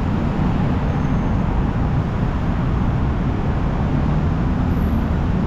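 City traffic rumbles steadily below.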